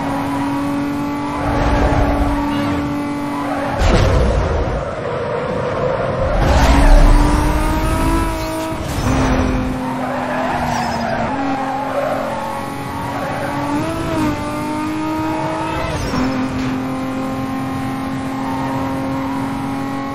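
A video game sports car's engine roars at high speed.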